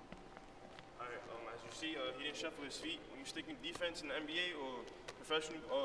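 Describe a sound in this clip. A young man speaks calmly and clearly to the listener.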